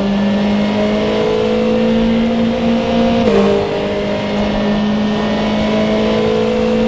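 A racing car engine drones loudly at high revs.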